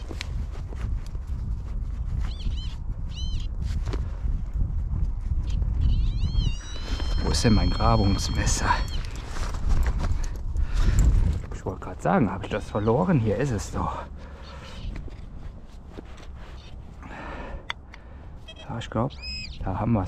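A small trowel scrapes and digs into dry soil.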